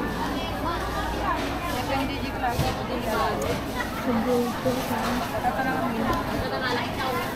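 Many voices chatter in a busy crowd around.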